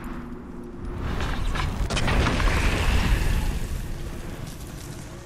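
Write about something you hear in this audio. A loud rushing blast swells and fades away.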